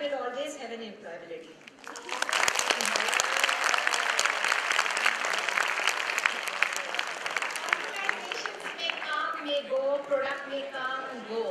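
A woman speaks animatedly through a microphone.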